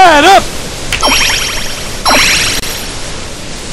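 Magic sparkles chime and shimmer.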